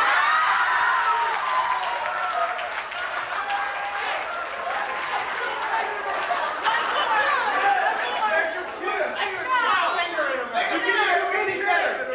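A woman speaks dramatically, heard from across a large room.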